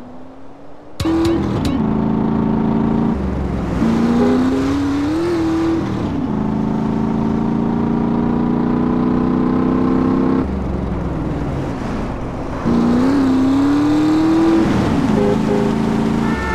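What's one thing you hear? A vehicle engine hums and revs as it drives.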